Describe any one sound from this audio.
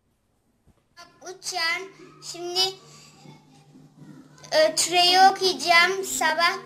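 A young boy recites aloud in a clear, singing voice, close by.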